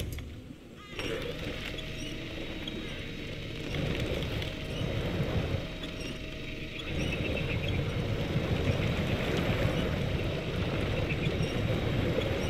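A truck engine rumbles and growls.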